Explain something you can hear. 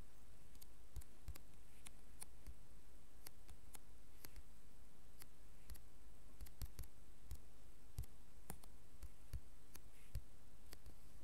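Blocks are placed with soft thuds.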